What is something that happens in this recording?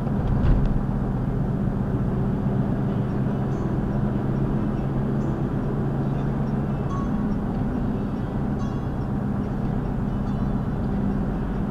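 Tyres roll steadily on the road.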